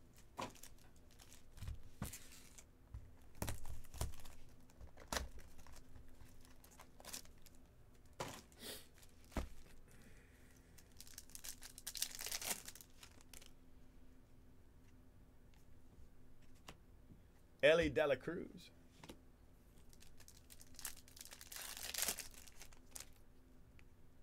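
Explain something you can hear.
Foil card wrappers crinkle and tear as they are opened.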